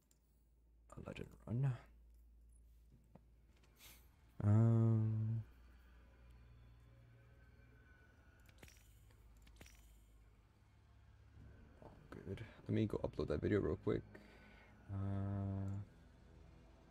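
Short electronic menu tones chime and buzz.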